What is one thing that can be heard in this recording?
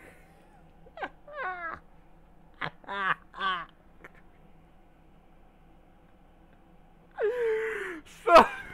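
A young man laughs loudly and wheezes close to a microphone.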